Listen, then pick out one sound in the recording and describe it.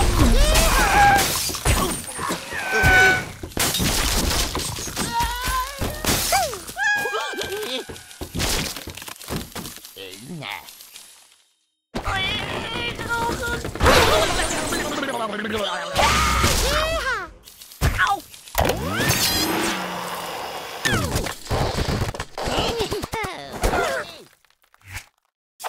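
Wooden and stone blocks crash and tumble with cartoon clatter.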